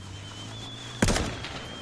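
A rifle fires a single loud shot that echoes.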